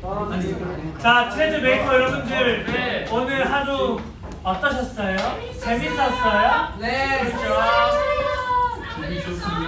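Young men sing together loudly and cheerfully.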